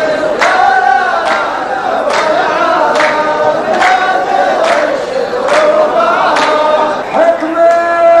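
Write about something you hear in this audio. A group of men chant together.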